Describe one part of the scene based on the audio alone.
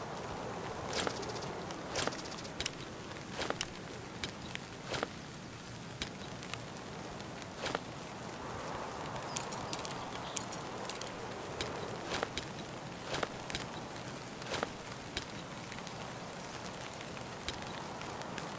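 Gear items rustle and clunk softly as they are moved one by one.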